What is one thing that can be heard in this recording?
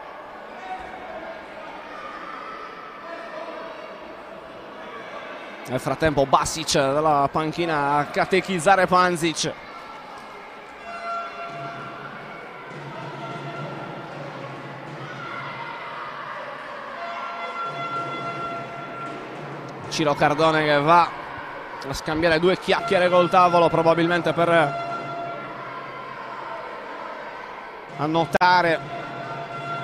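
Spectators murmur in a large echoing hall.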